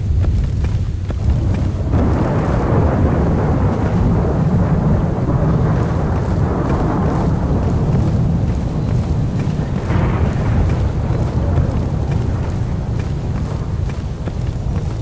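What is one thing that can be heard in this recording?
Footsteps tread steadily through wet ground.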